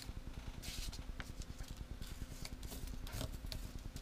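A plastic sheet crinkles and rustles as hands handle it.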